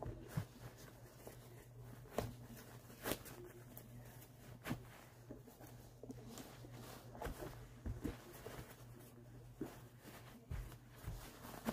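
Shoelaces rustle as they are pulled tight.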